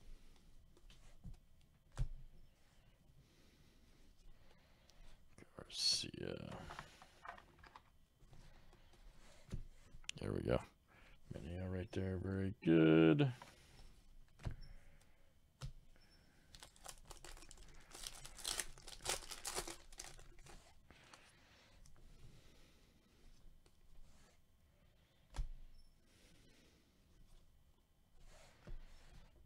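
Trading cards slide and shuffle against each other.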